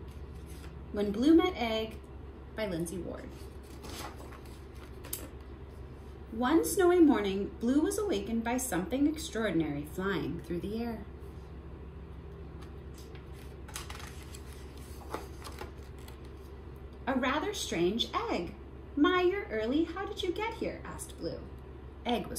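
A young woman reads aloud close by, in a lively storytelling voice.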